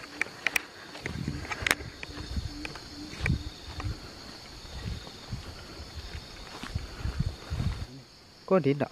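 Footsteps crunch through dry leaves and fronds.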